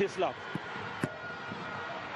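A football is struck hard with a thud.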